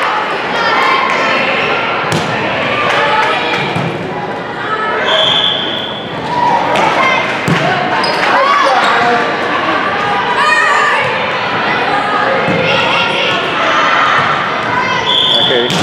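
A volleyball is struck by hand in a large echoing gym.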